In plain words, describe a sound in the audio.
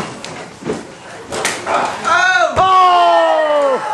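A body thuds heavily onto a padded floor.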